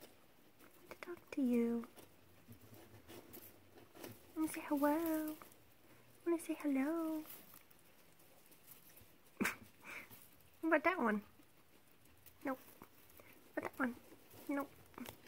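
A guinea pig squeaks in short, rising and falling calls, close by.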